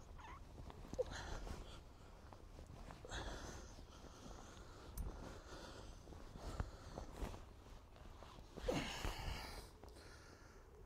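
A trowel scrapes and digs into soil.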